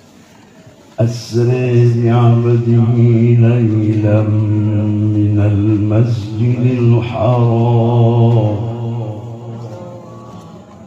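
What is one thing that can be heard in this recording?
An elderly man sings a long, drawn-out melody into a microphone, heard through loudspeakers in a large echoing hall.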